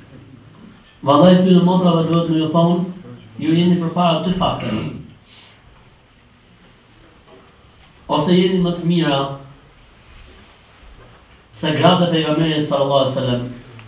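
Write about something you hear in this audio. A man chants melodically into a microphone, heard through loudspeakers in a room.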